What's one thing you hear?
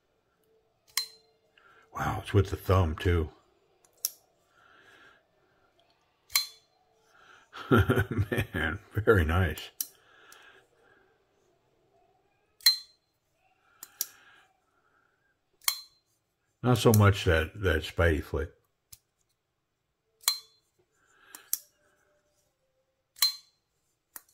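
A folding knife blade snaps open and shut with sharp clicks.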